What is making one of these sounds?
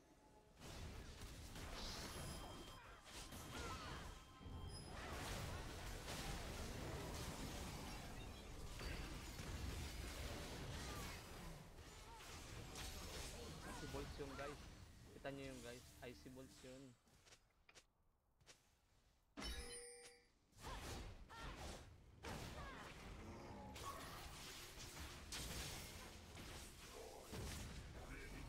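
Video game spells crackle and blast during a fight.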